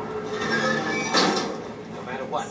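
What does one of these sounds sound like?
A wooden door is shoved and bangs.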